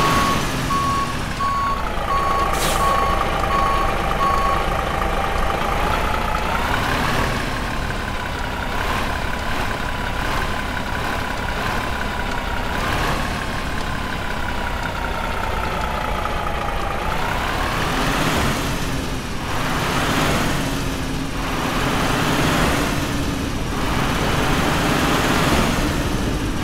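A diesel semi-truck engine runs at low speed.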